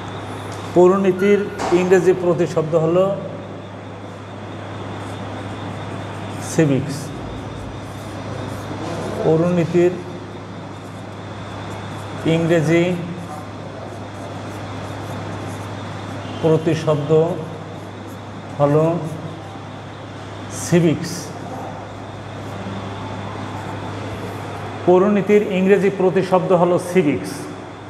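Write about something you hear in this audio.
A middle-aged man speaks calmly in short phrases, as if teaching, close by.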